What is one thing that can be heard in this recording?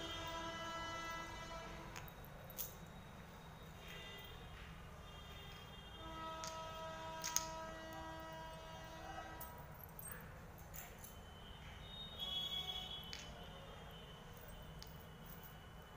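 Small glass bottles knock softly against each other.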